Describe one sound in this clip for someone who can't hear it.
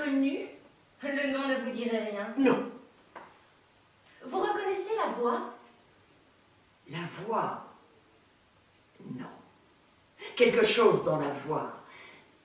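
A young woman speaks calmly, close by.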